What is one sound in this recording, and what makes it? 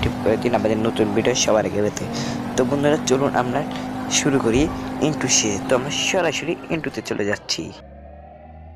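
A car engine hums and revs as a sports car drives along a road.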